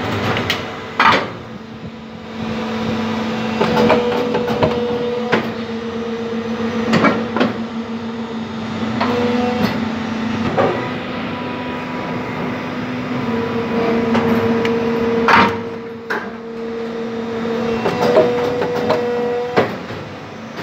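Steel mould halves clank as an injection moulding machine opens and closes.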